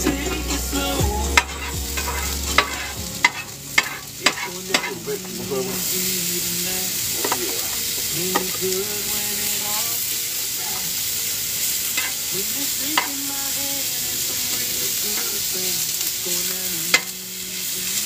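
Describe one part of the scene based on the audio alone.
Metal tongs clack against a pan.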